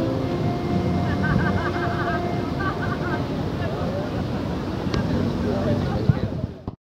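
A bowed string instrument plays a wavering melody.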